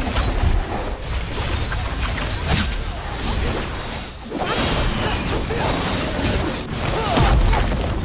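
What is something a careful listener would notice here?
Fantasy battle sound effects clash and boom with magic blasts.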